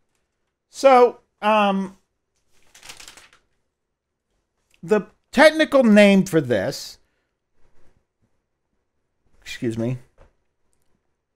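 A man speaks through a headset microphone, explaining in short bursts as in a lecture.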